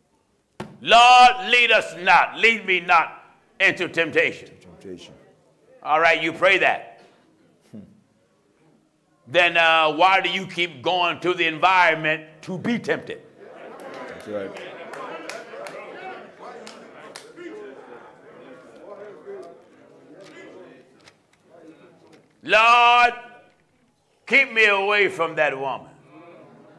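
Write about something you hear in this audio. A man preaches loudly and passionately into a microphone, with pauses between phrases.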